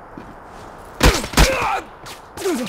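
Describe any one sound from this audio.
Loud gunshots crack sharply.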